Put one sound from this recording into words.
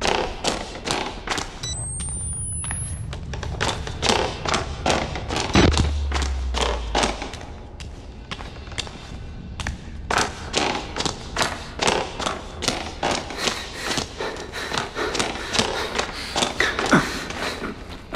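Quick footsteps thud on wooden floorboards.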